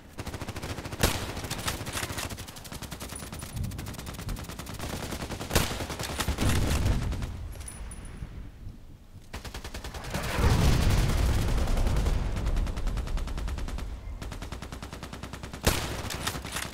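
A sniper rifle fires single loud shots.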